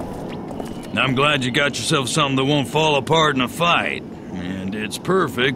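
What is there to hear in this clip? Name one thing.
A man speaks calmly and gruffly, close by.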